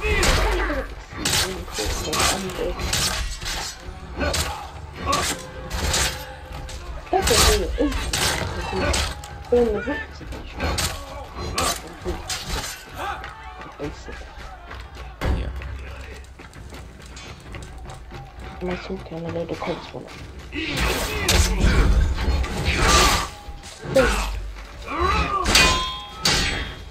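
Swords clash and clang in a crowded melee.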